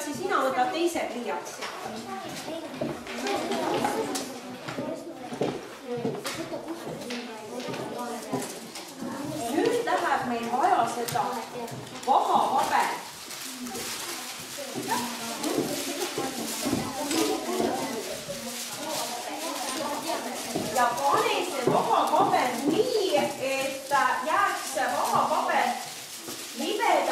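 Children chatter and talk over one another in a room.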